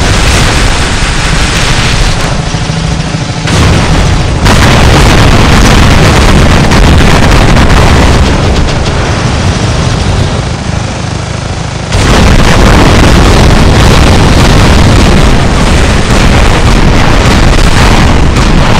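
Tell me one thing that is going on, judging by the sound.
Heavy gunfire rattles and explosions boom in a loud battle.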